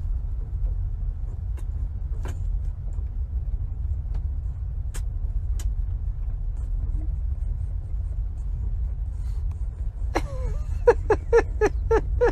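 A young woman kisses a pug with short smacking sounds.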